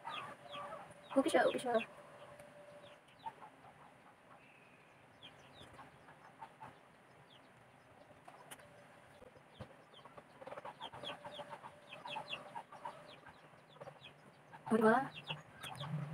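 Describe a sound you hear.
A woman speaks calmly, close to the microphone.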